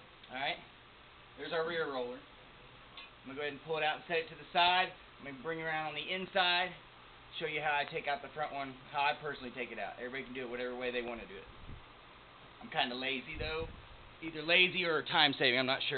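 A metal pipe scrapes and rattles.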